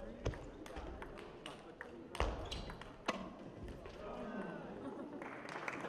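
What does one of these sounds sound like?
Table tennis balls click against paddles and tables in an echoing hall.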